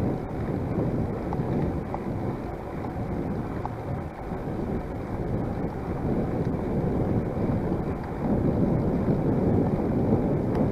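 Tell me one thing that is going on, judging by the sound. Wind buffets and rumbles against a microphone outdoors.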